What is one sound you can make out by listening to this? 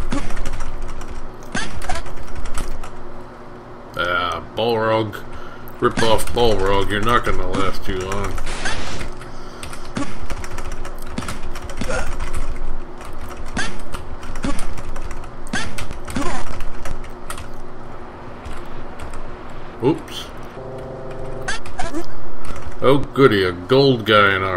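Electronic game music plays.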